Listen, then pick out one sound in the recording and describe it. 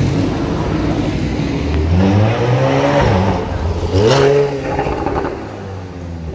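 A sports car engine revs loudly as it drives past.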